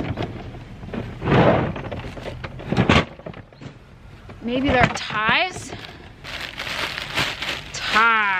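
A plastic bag rustles and crinkles as hands rummage through it.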